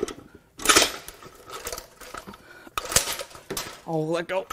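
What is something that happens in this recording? Metal parts clank and scrape as an engine part is lifted off.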